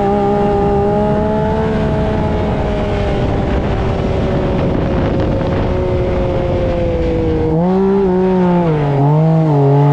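Wind rushes loudly past the open vehicle.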